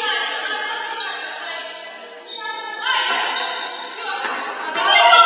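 Sneakers squeak on a wooden court in an echoing gym.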